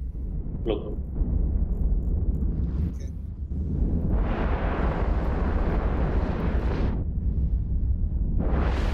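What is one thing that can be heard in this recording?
Spaceship weapons fire in a rumbling battle.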